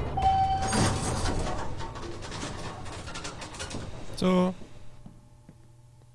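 A door swings open with a creak.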